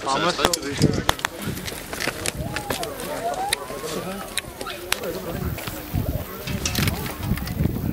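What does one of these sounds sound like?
Wheels crunch over a stone path.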